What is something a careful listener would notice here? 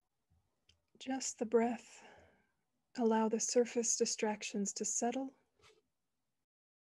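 A young woman speaks calmly and softly through an online call.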